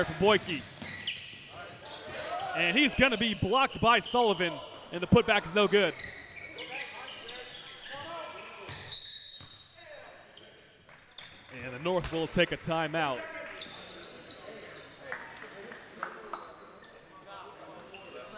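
Young players shout to each other.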